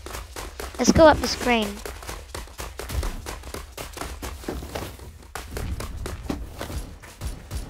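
Footsteps thud steadily on soft ground.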